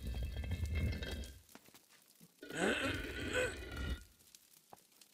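A heavy stone disc grinds as it is turned.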